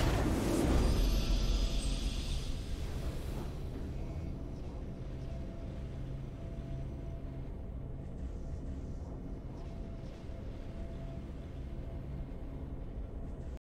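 A video game victory fanfare plays and fades.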